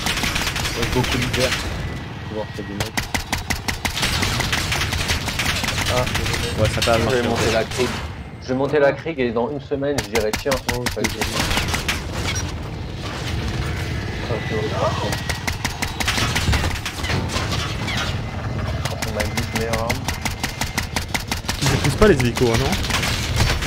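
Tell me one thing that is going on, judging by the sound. Rapid gunfire bursts out close by in quick runs.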